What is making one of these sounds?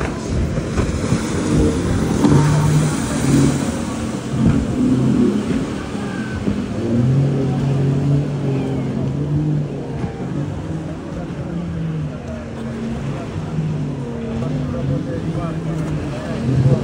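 A motorboat engine roars as the boat speeds past on the water.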